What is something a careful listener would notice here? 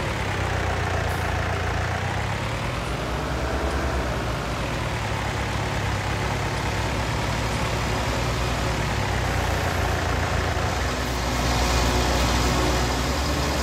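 A tractor engine hums steadily as it drives.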